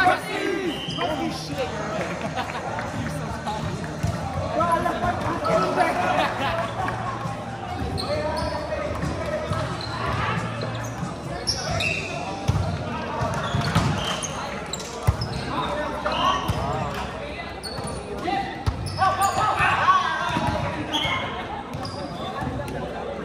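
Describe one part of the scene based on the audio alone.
Sneakers squeak sharply on a wooden court floor.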